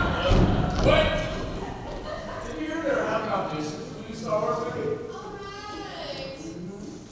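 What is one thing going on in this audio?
Young people talk and laugh together in a large echoing hall.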